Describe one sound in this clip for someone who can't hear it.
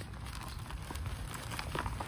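Loose soil trickles and pours into a plastic pot.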